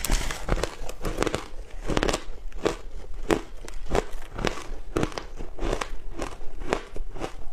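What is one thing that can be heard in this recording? A young woman chews crunchy food close to a microphone.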